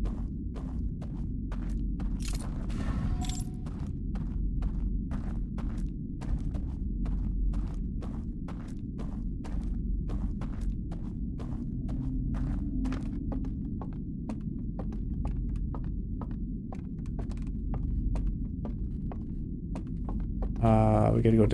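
Footsteps tread steadily on wooden boards.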